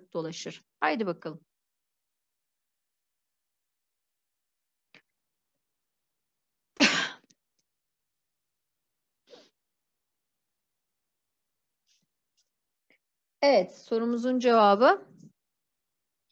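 A young woman speaks calmly in short bursts through a computer microphone.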